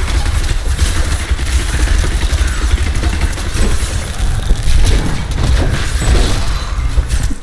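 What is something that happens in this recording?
Game spells blast and crackle amid a fight.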